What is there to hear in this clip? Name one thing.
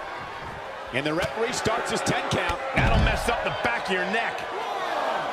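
Bodies thud heavily onto a wrestling ring.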